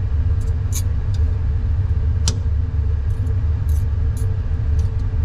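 Metal tweezers click and tap lightly against a metal tray.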